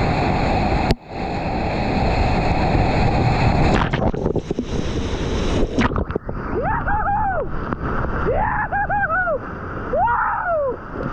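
Whitewater rushes and roars loudly close by.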